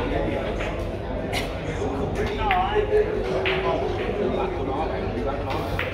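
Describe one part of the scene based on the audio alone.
Billiard balls click against each other.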